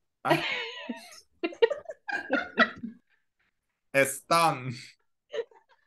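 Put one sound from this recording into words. Young women laugh over an online call.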